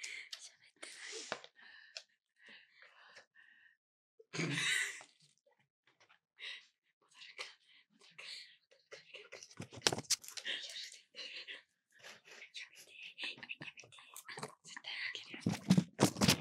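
Young women whisper softly close to a microphone.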